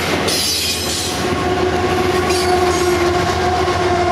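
A diesel locomotive engine roars as it passes close by.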